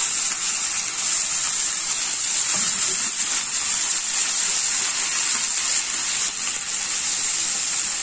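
Food sizzles and crackles loudly in hot oil.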